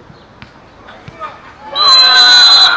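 A ball is kicked hard.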